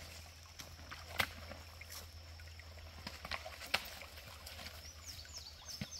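A horse's hooves thud and clop on soft ground.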